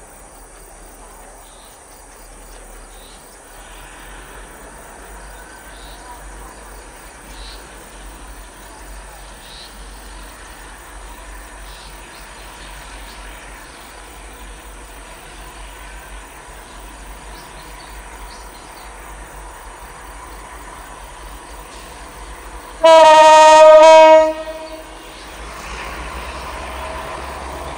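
A diesel locomotive rumbles as it slowly rolls toward the listener.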